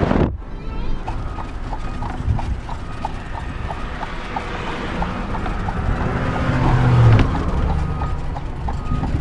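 Horse hooves clop at a steady trot on pavement.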